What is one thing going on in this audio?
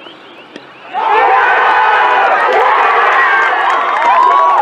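Players shout excitedly across an open field.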